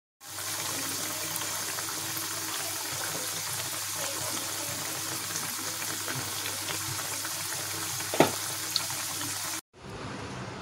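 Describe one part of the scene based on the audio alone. Hot oil sizzles and bubbles steadily in a pot.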